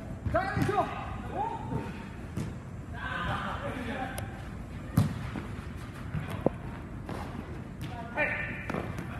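Young players shout to each other in a large echoing indoor hall.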